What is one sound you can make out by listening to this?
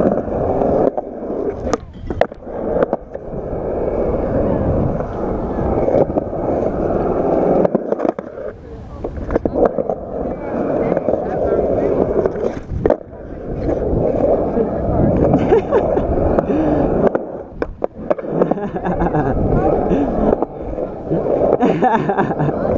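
Skateboard wheels roll and rumble over rough concrete.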